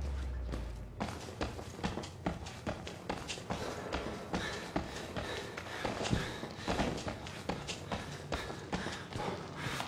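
Footsteps walk quickly over a hard tiled floor.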